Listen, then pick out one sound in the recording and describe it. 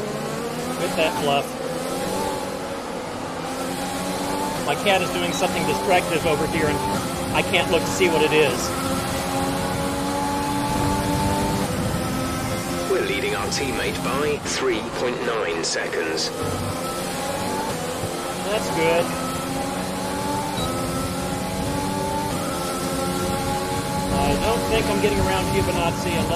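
A racing car engine whines and revs up and down as gears shift.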